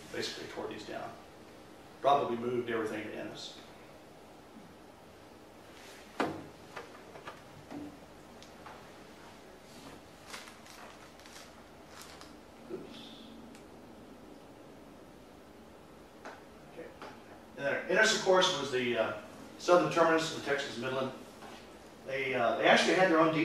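An elderly man speaks calmly through a microphone, pausing often.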